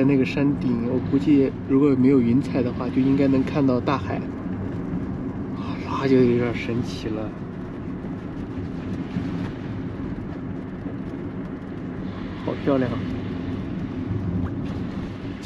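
A car engine hums steadily with road rumble while driving.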